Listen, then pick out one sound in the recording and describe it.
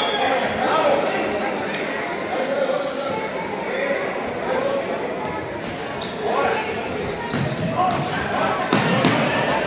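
Shoes squeak and thud on a wooden court.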